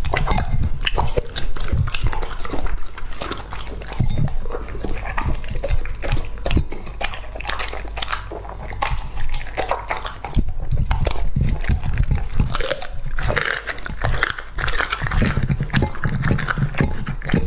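A dog chews and crunches food close by.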